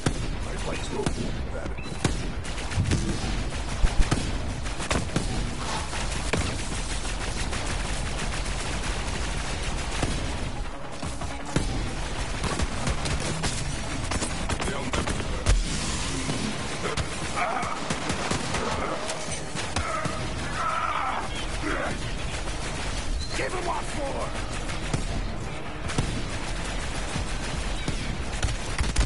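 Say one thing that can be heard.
Gunfire and blasts crackle from a game throughout.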